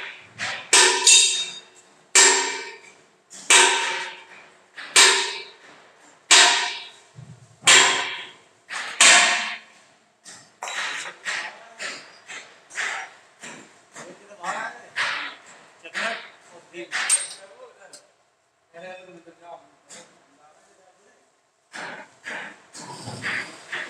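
Metal blows strike a steel concrete mixer drum, which rings out after each blow.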